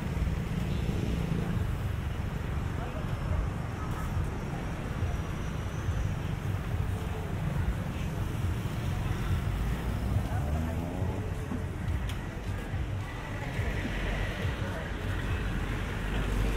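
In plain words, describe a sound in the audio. Traffic hums along a nearby street.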